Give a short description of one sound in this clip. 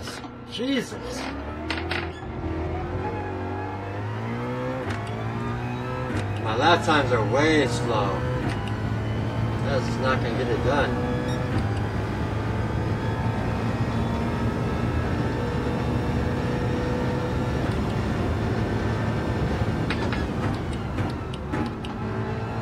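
A racing car engine roars and revs through gear changes.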